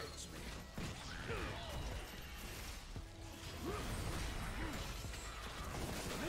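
Magical spell effects whoosh, zap and crackle in a busy fight.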